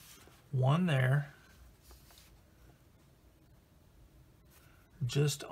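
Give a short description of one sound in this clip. A paper sheet rustles softly as hands handle it.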